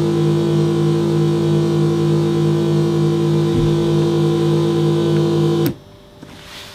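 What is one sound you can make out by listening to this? A synthesizer drones with a loud, steady buzzing tone, then cuts off abruptly.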